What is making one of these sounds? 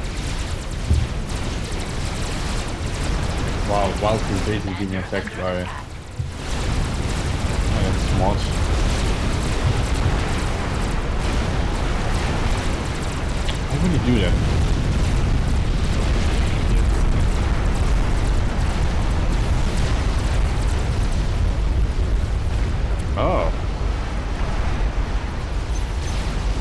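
Gunfire and explosions rumble steadily in a game battle.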